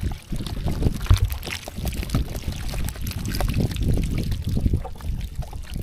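Wet fish flap and slither against each other in a pile.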